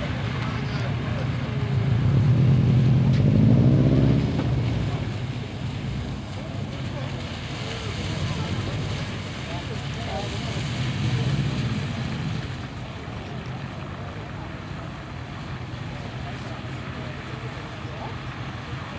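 A car engine revs hard and rises in pitch as the car slides around.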